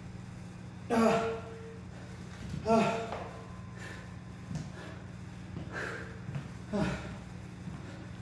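A young man grunts loudly with effort nearby.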